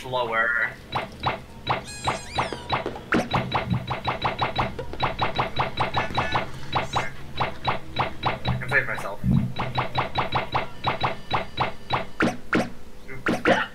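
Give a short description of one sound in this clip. Short electronic ticks repeat rapidly, like a game menu cycling through letters.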